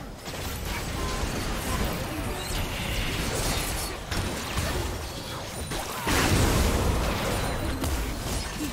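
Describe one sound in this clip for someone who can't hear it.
Magic spells whoosh and crackle in a hectic fight.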